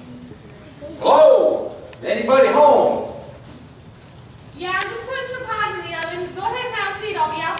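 A man speaks loudly and with animation on stage in an echoing hall.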